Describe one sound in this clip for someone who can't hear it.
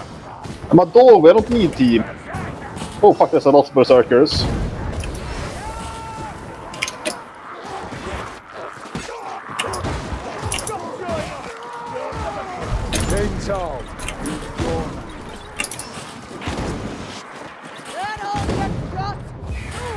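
A gun fires in sharp, loud bursts.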